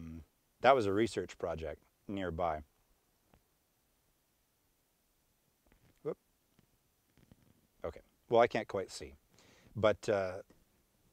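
A young man speaks calmly and close to a microphone, with pauses.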